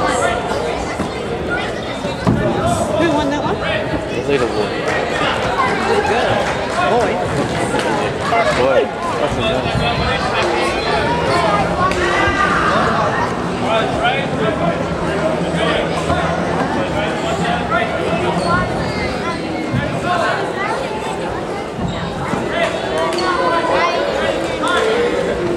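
Many children and adults chatter throughout a large echoing hall.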